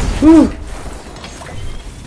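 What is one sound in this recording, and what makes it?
An electric blast crackles and fizzes.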